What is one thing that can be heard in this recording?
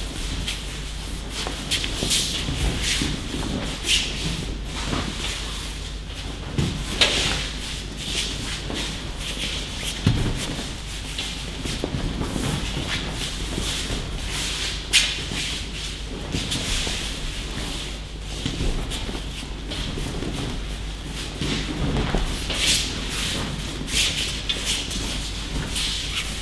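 Bare feet shuffle and slide on mats.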